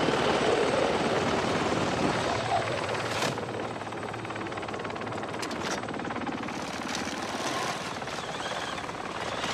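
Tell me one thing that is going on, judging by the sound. A helicopter's rotor thumps loudly overhead with a steady roar.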